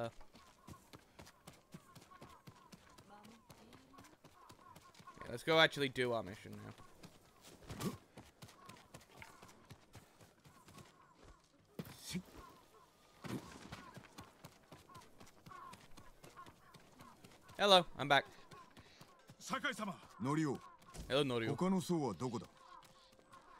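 Footsteps patter quickly on stone.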